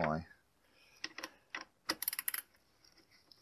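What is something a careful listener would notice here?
A metal nut driver clicks and clinks against a hose clamp.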